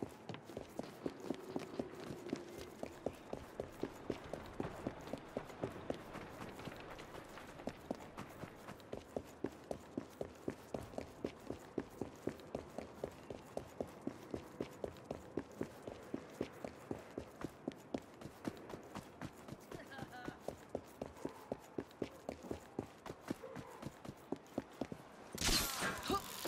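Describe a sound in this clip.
Running footsteps thud quickly on wet cobblestones.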